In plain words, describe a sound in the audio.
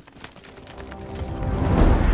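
Soldiers' boots tramp in step on stone.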